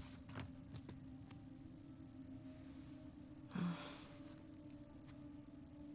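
Objects rattle and shuffle inside a cardboard box.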